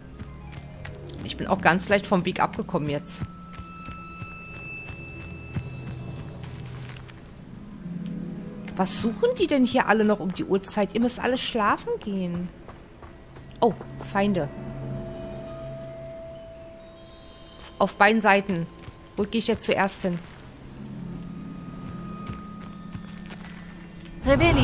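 Footsteps swish through grass and crunch on a dirt path.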